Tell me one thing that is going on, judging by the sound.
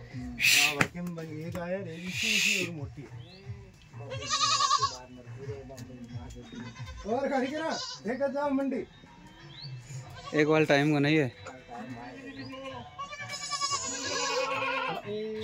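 Young goats bleat loudly and repeatedly, close by.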